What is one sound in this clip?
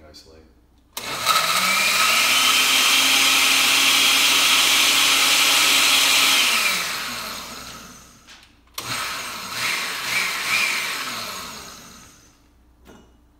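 A blender whirs loudly, then winds down.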